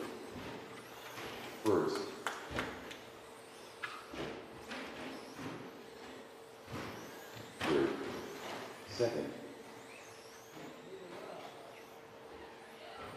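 Small electric model cars whine as they race around, echoing in a large hall.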